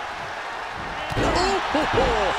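A body slams onto a ring mat with a heavy thud.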